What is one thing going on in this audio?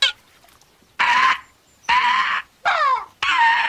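A cartoon bird chirps loudly in short repeated bursts.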